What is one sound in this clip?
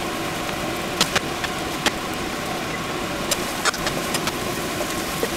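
Metal tongs clink against a pan now and then.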